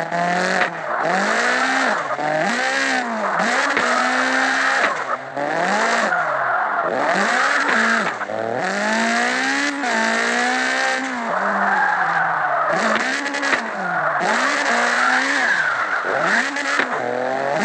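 Tyres squeal as a car drifts.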